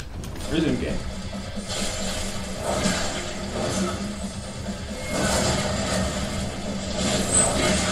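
Blades slash and strike in a fast fight, with hits and clangs.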